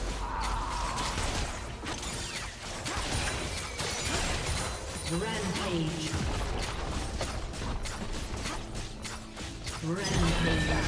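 Magic spells and blows crackle and clash in a fast battle.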